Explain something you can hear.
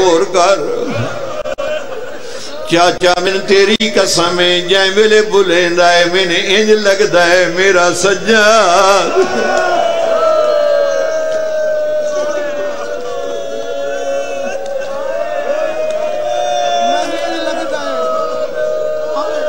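A middle-aged man speaks passionately into a microphone over loudspeakers, his voice echoing.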